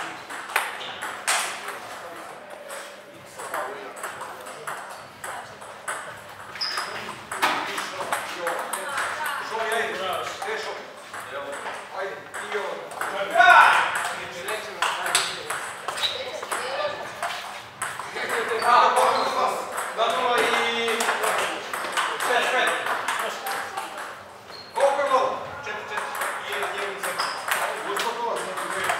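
A table tennis ball bounces on a table.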